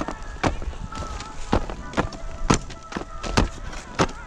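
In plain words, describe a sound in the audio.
A ski pole taps against the snow.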